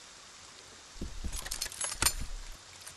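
A metal trap clanks and clicks as it is set down.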